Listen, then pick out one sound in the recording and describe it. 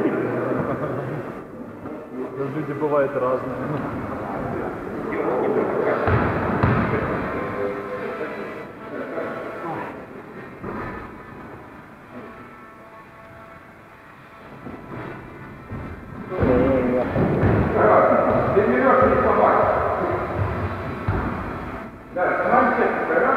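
A young woman talks close by in a large echoing hall.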